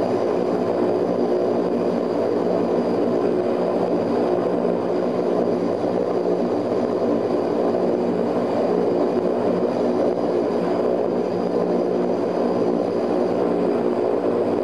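Aircraft propeller engines drone loudly and steadily, heard from inside the cabin.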